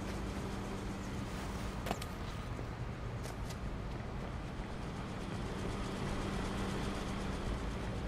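Footsteps run quickly over hard paving.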